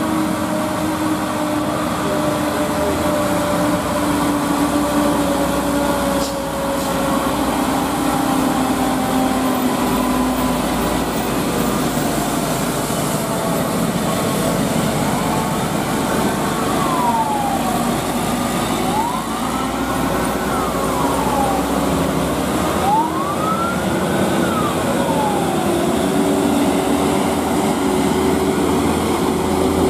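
A light diesel dump truck labors uphill under a full load.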